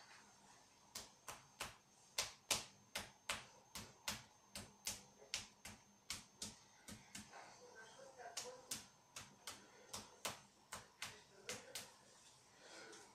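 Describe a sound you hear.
Hands slap rhythmically on a man's bare back.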